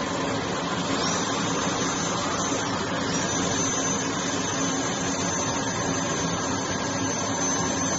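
A dental drill whines at a high pitch.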